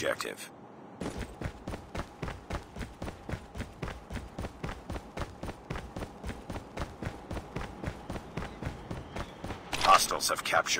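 Quick, even footsteps run on hard ground.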